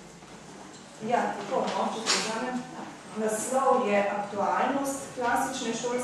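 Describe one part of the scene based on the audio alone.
A woman speaks calmly to an audience.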